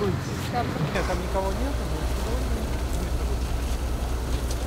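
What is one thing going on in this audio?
A fire truck engine rumbles steadily nearby.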